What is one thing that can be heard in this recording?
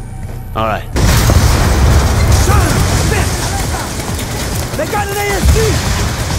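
An explosion booms loudly and rumbles on.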